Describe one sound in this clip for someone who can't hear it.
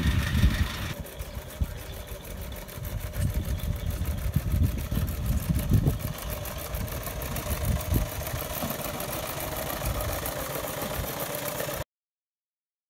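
A miniature steam traction engine chuffs steadily as it drives past.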